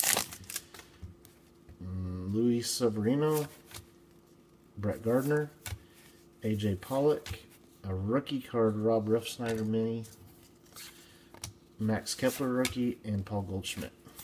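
Trading cards slide and flick against each other as they are shuffled.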